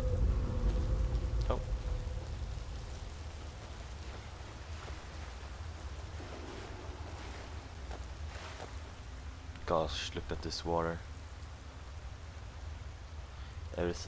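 Water rushes and splashes over rocks nearby.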